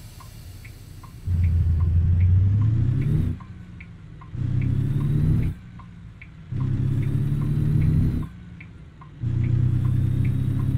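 A truck engine revs up in repeated bursts, rising in pitch and then dropping back to a low idle.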